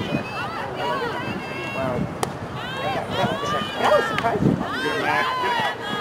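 Hockey sticks clack against a ball now and then.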